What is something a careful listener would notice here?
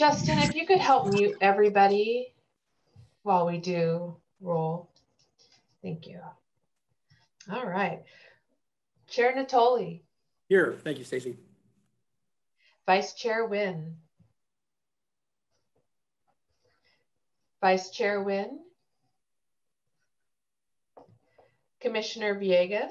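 A young woman speaks calmly in pauses over an online call.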